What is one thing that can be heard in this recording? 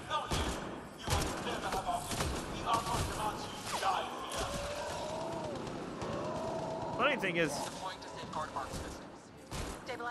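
Guns fire in sharp bursts of shots.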